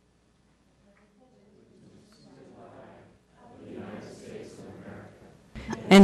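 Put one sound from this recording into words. A crowd of people recite together in unison.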